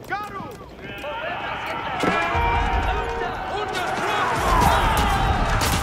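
Soldiers clash and fight in a noisy battle.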